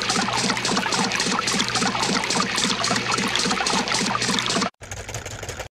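Water sprays with a loud hiss.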